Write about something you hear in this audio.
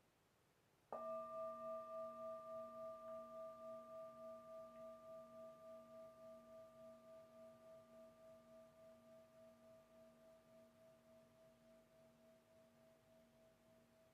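A singing bowl is struck once and rings with a long, slowly fading, wavering tone.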